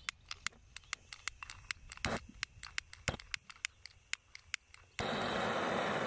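A gas torch igniter clicks rapidly, again and again.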